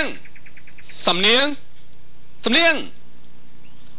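A young man sings close by.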